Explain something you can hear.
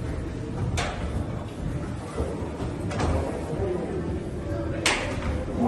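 Cleated footsteps clack on a hard floor.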